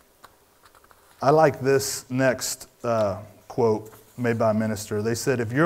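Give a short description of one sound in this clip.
Paper rustles softly as pages are handled.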